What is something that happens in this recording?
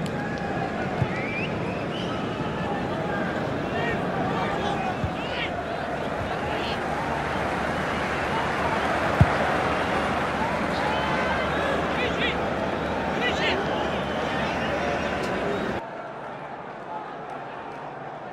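Fingers flick small plastic figures that click against each other and a ball.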